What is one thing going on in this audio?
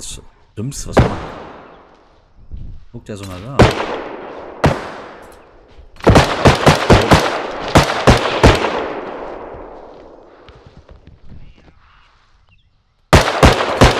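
Gunshots crack loudly with echoing tails.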